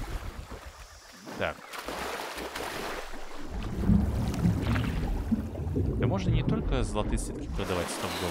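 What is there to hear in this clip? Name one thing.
Water splashes as someone wades through a river.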